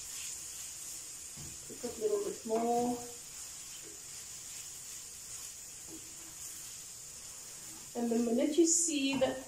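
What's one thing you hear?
A wooden spoon scrapes and stirs food in a frying pan.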